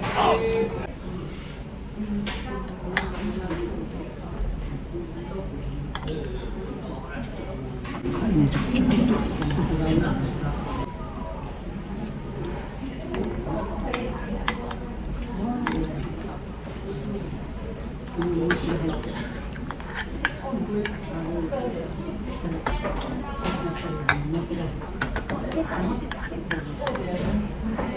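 A ceramic spoon clinks against a clay pot while scooping soup.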